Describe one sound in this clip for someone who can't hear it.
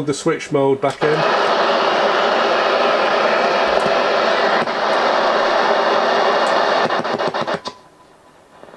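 Static hiss comes from a radio receiver, then cuts off.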